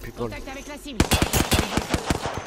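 An automatic rifle fires in rapid bursts.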